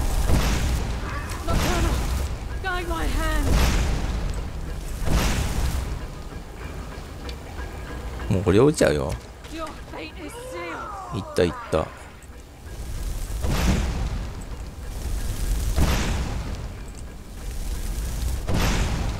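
Fire spells roar and crackle in short bursts.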